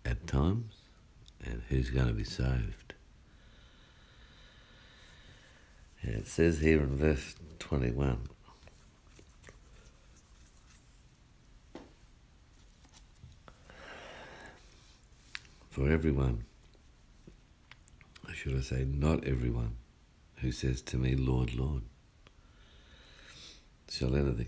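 A man speaks calmly close by, in short phrases with pauses.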